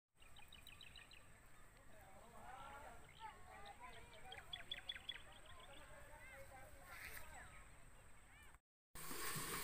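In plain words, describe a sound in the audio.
Birds chirp and twitter outdoors.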